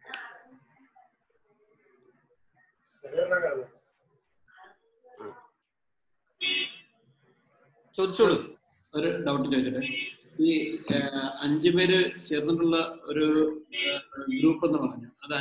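A man speaks calmly into a phone close by.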